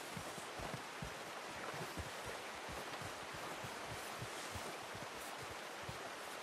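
A stream rushes and gurgles nearby.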